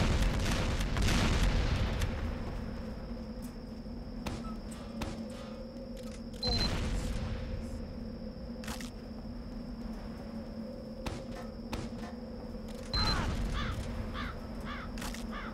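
Rocket blasts boom loudly, each followed by a long rumbling fade.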